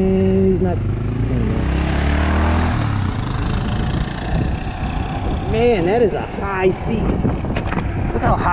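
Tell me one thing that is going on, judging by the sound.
A motorcycle engine hums and revs as the rider cruises.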